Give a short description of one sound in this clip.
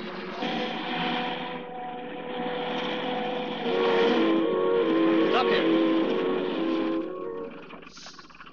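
A car engine hums as a jeep drives along a road.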